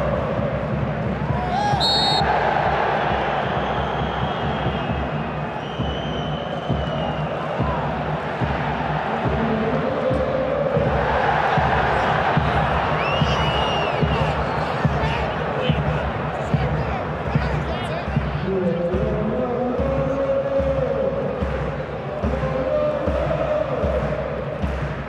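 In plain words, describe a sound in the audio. A large stadium crowd cheers and chants steadily, echoing outdoors.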